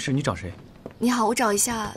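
A young woman speaks politely and close by.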